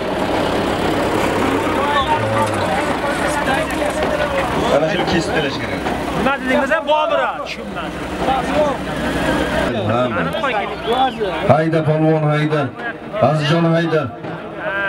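A crowd of men shouts and talks outdoors.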